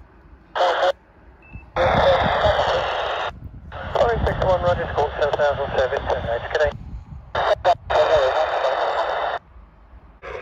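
A radio scanner's loudspeaker crackles in short bursts.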